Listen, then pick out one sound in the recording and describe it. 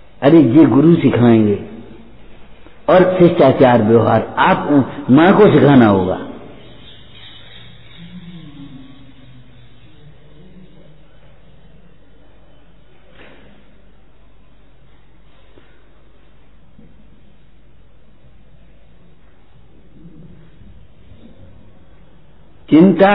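An elderly man speaks calmly and with emphasis into a close microphone.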